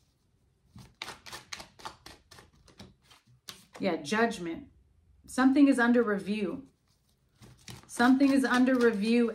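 Cards riffle and flick as they are shuffled.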